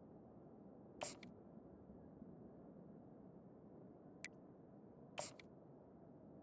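Short electronic menu clicks sound a few times.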